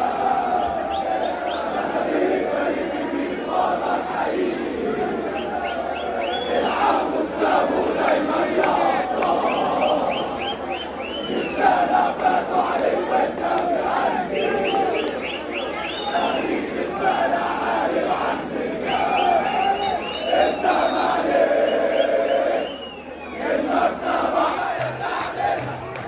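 A large crowd of men chants and sings loudly together in a big echoing space.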